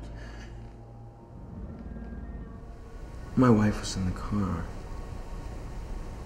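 A man speaks in a low voice close by.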